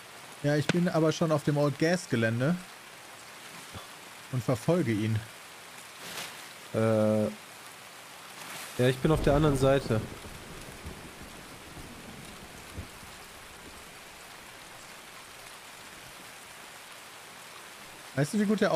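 A young man talks casually into a close microphone, in bursts.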